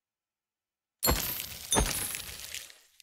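A game sound effect bursts out loudly, then fades.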